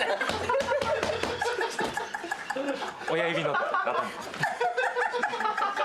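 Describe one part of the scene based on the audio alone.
Another young man laughs along nearby.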